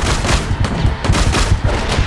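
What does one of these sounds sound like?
An explosion bursts in a video game.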